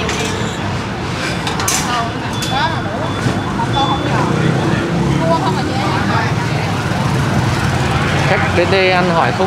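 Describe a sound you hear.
A busy crowd chatters nearby outdoors.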